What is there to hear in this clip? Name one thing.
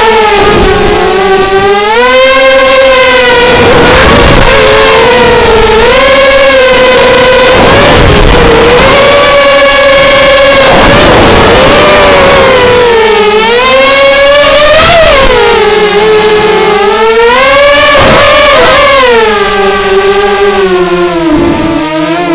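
Drone motors whine loudly, rising and falling in pitch as the craft tilts and rolls.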